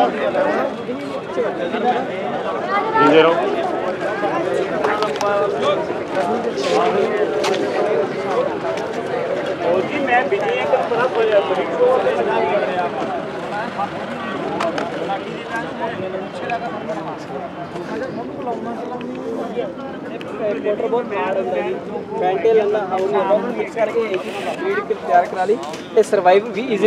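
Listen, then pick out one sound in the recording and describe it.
A crowd of men chatters all around outdoors.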